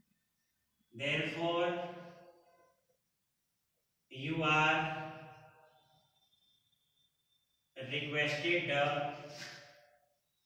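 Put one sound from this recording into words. An adult man reads out slowly in bursts, close by.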